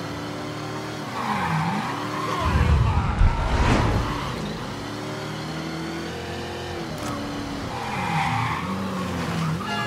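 Car tyres screech as the car skids around turns.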